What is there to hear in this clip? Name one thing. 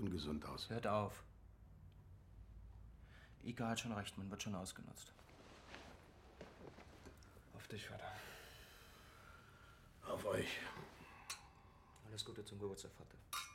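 An older man speaks in a low voice close by.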